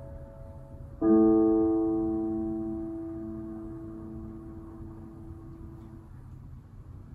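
A piano plays a chord that rings out and slowly fades.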